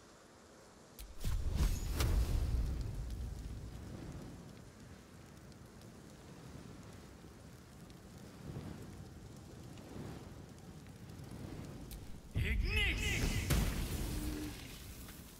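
A fiery blast bursts with a deep whooshing rumble.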